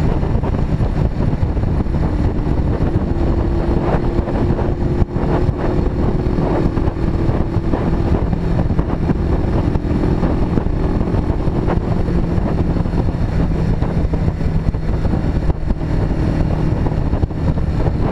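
Wind roars loudly past the rider.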